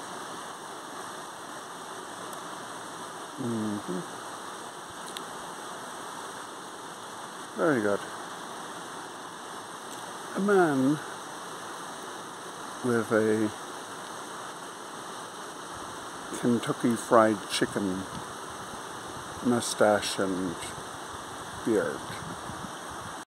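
Water trickles and splashes steadily over rocks.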